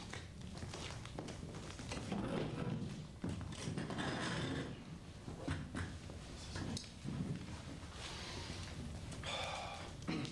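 Footsteps shuffle across a wooden stage.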